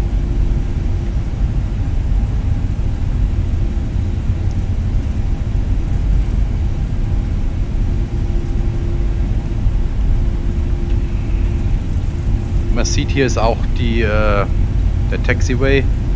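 Jet engines rumble and hum steadily as an airliner rolls along a runway.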